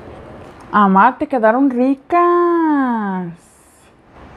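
A young woman speaks close to a microphone in a lively, sing-song voice.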